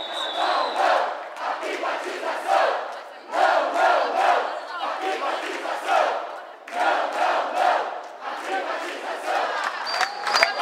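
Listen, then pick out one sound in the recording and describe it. A crowd chants loudly and rhythmically in a large hall.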